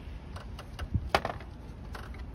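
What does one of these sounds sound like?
A metal tool clatters as it is set down.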